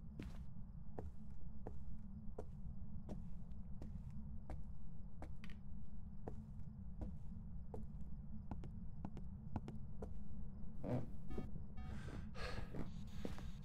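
Footsteps walk at an even pace across a hard floor.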